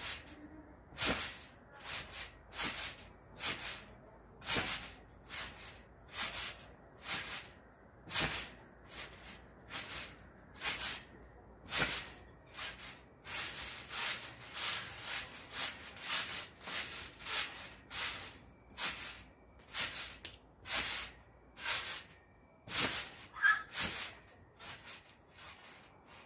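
A trampoline mat thumps and creaks in a steady rhythm.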